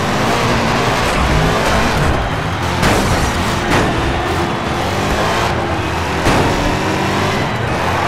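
Cars bump and crash into each other with sharp knocks.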